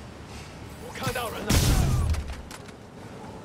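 A web shoots out with a loud whoosh.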